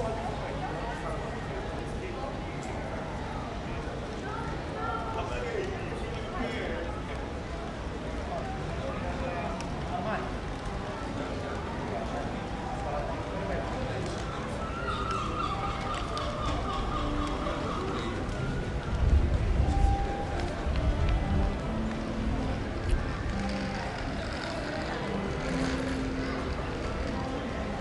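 Men and women passing by chatter and murmur nearby, outdoors.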